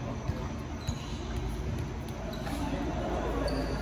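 A volleyball thumps on the floor.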